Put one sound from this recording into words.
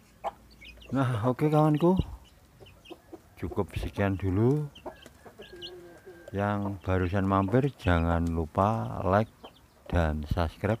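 A rooster crows loudly nearby, several times.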